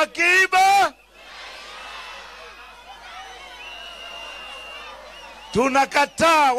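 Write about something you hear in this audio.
A large crowd cheers and murmurs.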